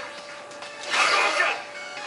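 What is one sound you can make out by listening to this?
A video game fighter unleashes an energy blast with a whooshing burst.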